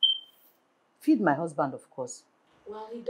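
A woman speaks firmly close by.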